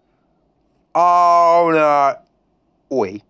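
A short, bright jingle plays.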